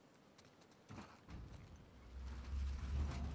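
A heavy metal dumpster scrapes and rumbles as it is pushed.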